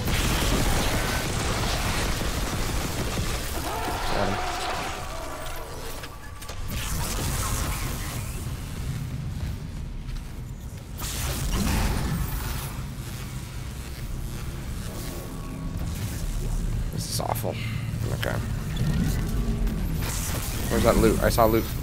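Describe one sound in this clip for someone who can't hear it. Electricity crackles and buzzes in loud bursts.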